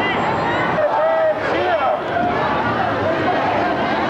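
A man speaks loudly through a megaphone.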